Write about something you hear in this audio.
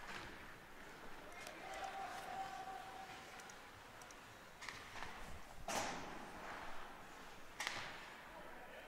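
Hockey sticks knock against a puck.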